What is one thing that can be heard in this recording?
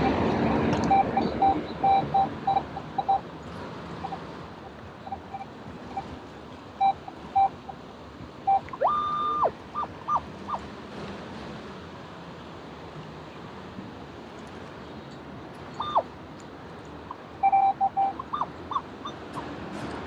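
A metal detector beeps in short tones underwater.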